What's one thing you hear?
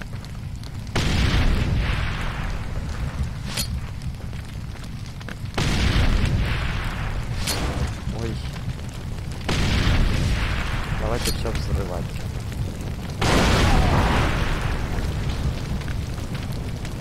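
Explosions boom loudly nearby, each followed by a rumbling roar that slowly fades.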